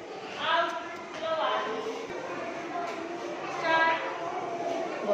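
Young children call out and chatter nearby.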